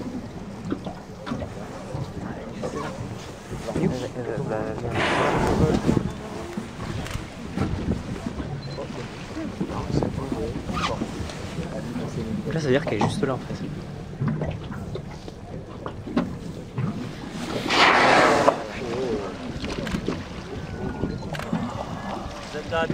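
Small waves lap against a boat.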